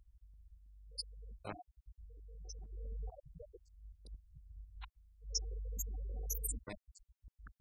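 A man speaks calmly, heard at a distance in a quiet room.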